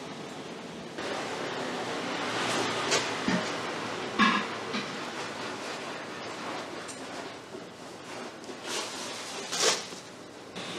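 A knife peels the skin from a fruit with soft tearing sounds.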